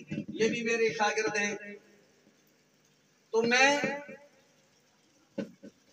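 An elderly man speaks forcefully into a microphone, heard through a loudspeaker.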